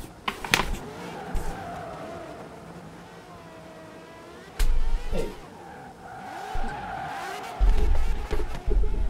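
Car tyres squeal while drifting.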